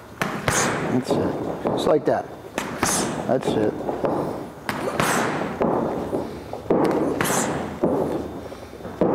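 Boxing gloves thump sharply against punch mitts.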